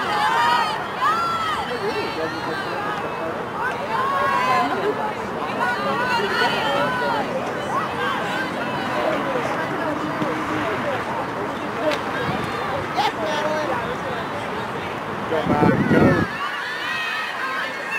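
A crowd of young women and girls shouts and cheers outdoors.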